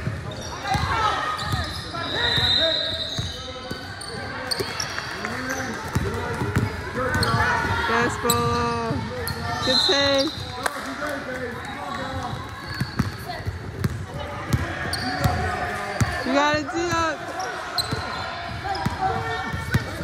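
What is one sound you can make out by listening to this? Young women shout and call out to each other in an echoing gym.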